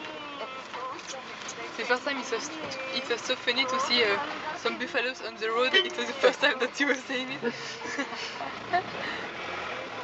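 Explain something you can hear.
A man talks with animation close by inside a car.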